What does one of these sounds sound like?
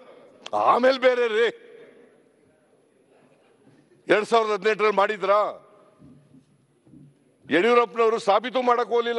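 An elderly man speaks loudly into a microphone in short bursts, in a large echoing hall.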